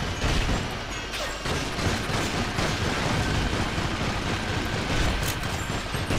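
A rifle fires a quick burst.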